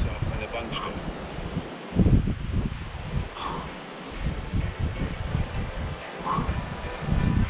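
Wind blows hard against a microphone outdoors.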